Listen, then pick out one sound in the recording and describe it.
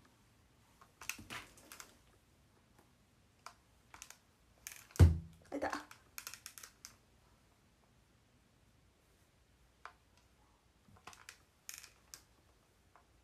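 A hair straightener clicks and clacks shut against hair.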